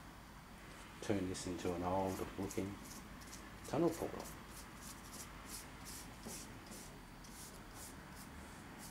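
A stiff brush scrubs rhythmically over wood.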